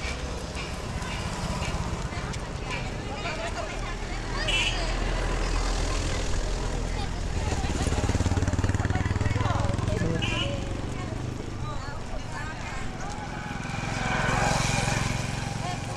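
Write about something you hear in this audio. A crowd of women chatter outdoors.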